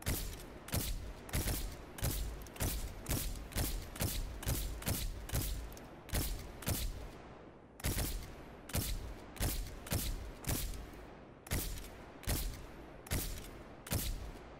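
A gun fires single shots in a steady rhythm, each echoing briefly.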